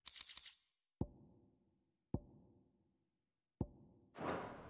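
Soft menu clicks sound a few times.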